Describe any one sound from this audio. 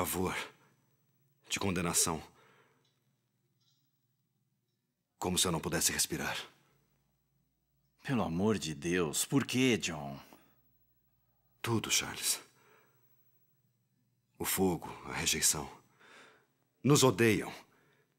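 A man speaks quietly, close by.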